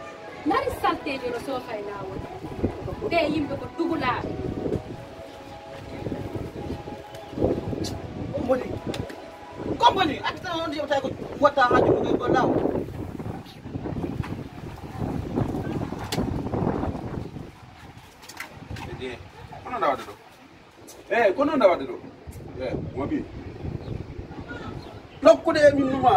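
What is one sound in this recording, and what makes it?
A young man speaks loudly and forcefully close by.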